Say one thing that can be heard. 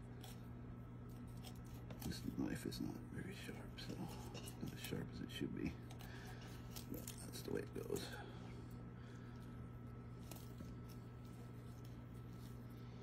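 A knife slices softly through raw meat.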